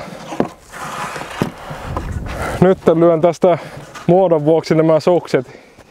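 Boots crunch in deep snow.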